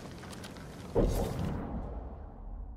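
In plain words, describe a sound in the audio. A short chime sounds.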